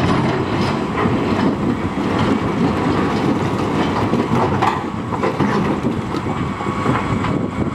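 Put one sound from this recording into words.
Rocks scrape and clatter in an excavator bucket.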